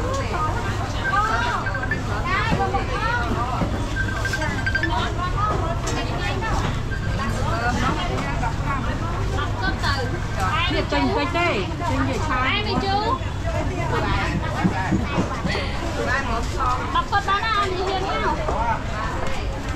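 Many voices chatter in a busy outdoor crowd.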